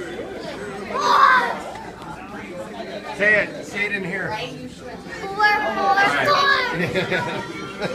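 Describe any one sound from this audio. A young child shouts excitedly up close.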